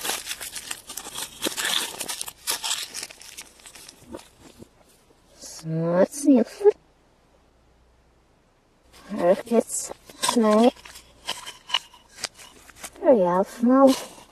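Foil wrapping crinkles as hands peel it off.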